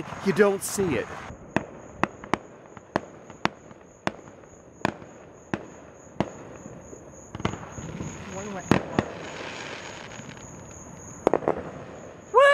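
Fireworks pop and crackle far off.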